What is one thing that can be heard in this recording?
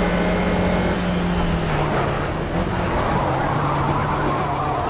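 A race car engine drops in pitch as the driver brakes and shifts down.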